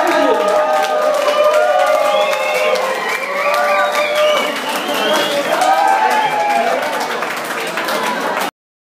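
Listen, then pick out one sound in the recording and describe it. A large crowd sings and cheers loudly in an echoing hall.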